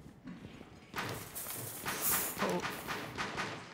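Barbed wire rustles and rattles as it is unrolled.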